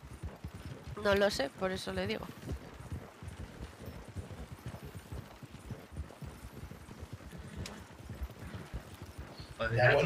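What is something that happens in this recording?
A horse's hooves clop steadily on a dirt track.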